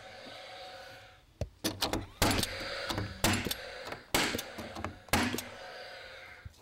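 A nail gun fires nails into wood with sharp bangs.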